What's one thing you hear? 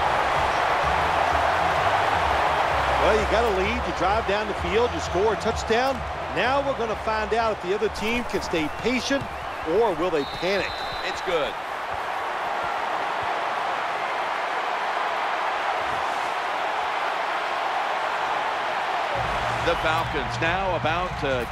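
A large crowd cheers and roars steadily in a big stadium.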